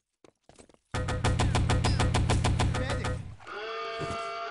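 A submachine gun fires a rapid burst.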